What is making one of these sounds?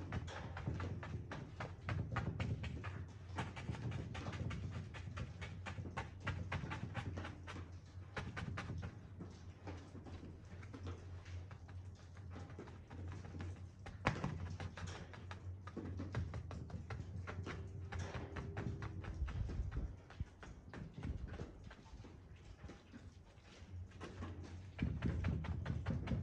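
A brush taps and dabs briskly against a canvas.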